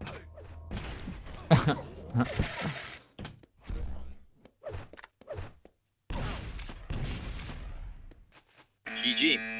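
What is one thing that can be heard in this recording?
Game weapons fire in rapid bursts with sharp blasts.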